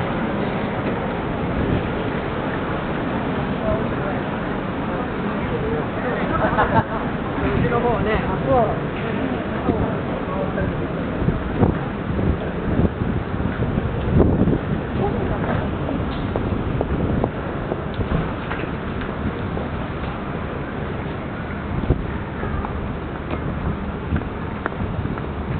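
Traffic hums steadily along a busy street outdoors.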